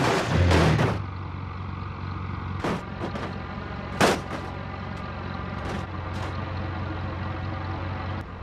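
A truck engine idles with a steady low drone.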